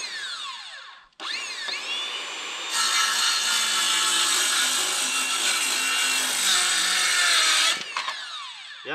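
A power drill whirs loudly, speeding up and slowing down.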